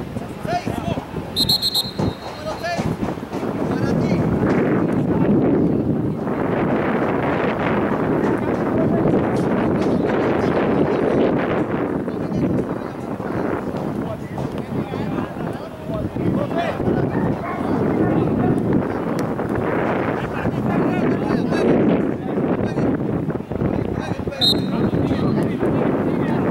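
Wind blows steadily outdoors, buffeting the microphone.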